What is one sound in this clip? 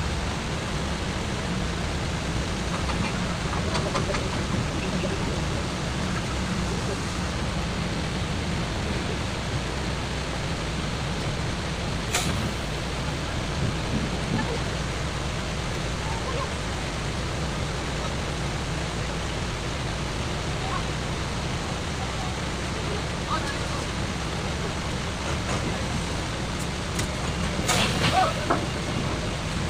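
A ship's engine rumbles low and steady throughout.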